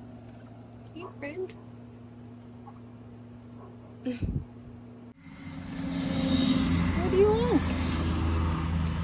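A turkey clucks and yelps close by.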